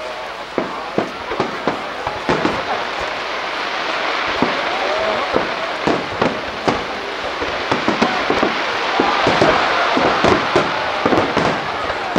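Fireworks boom and crackle overhead in quick succession.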